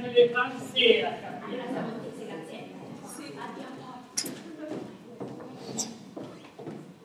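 A young woman speaks with feeling at a distance, in a hall with some echo.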